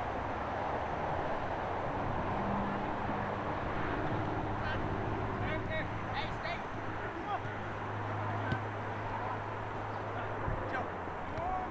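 Young players call out to each other across an open field in the distance.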